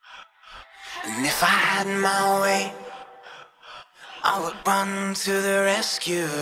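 A man sings into a microphone over amplified music.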